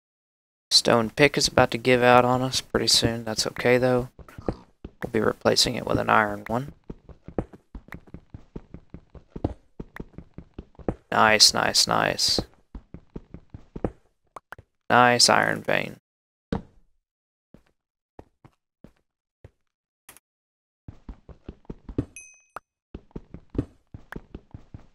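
A pickaxe taps and chips rapidly at stone.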